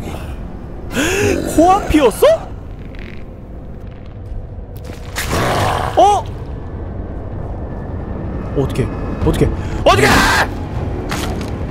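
A large beast growls and roars loudly.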